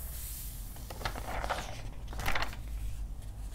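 Wrapping paper crinkles and rustles as it is lifted.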